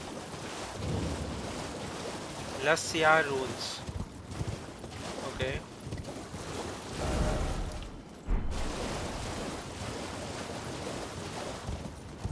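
A horse gallops and splashes through shallow water.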